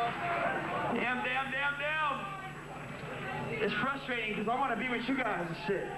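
A man talks loudly close by.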